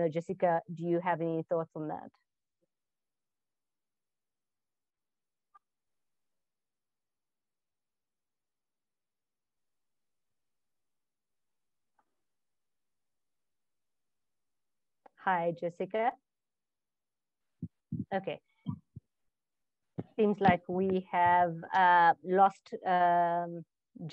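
A woman speaks calmly through an online call, close to the microphone.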